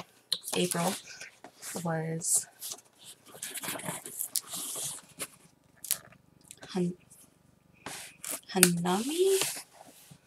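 Cardboard packaging rustles and crinkles in hands.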